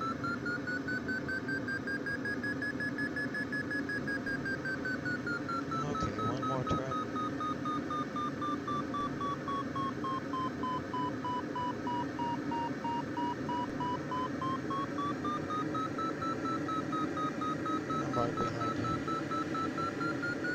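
An electronic tone hums, slowly rising and falling in pitch.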